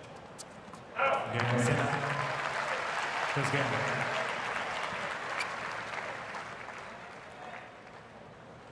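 A large crowd cheers and applauds loudly, then fades.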